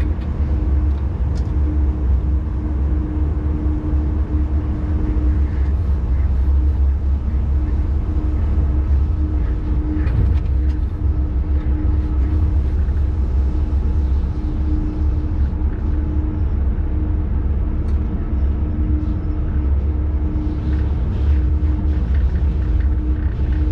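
A train's motor hums with a steady drone.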